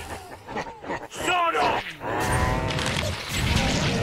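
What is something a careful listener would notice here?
Gunfire and an explosion boom from a game.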